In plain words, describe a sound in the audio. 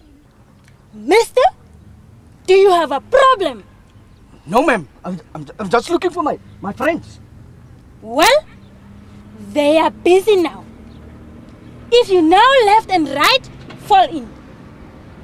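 A young woman speaks sharply and with animation, close by, outdoors.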